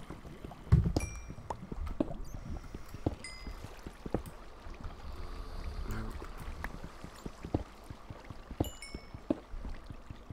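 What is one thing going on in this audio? A pickaxe chips at stone with sharp, repeated knocks.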